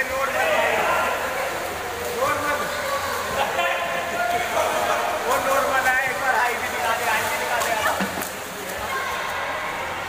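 Young men shout and call out excitedly, echoing in a large indoor hall.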